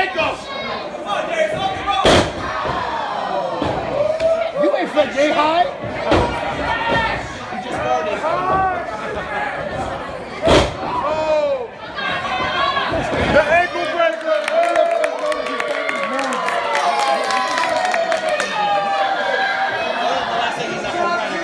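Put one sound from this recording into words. A crowd of spectators shouts and cheers indoors.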